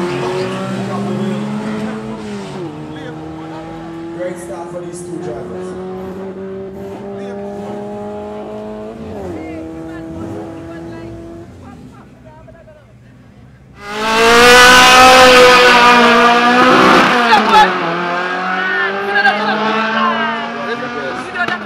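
A race car engine roars loudly, rising in pitch and dropping with each gear change.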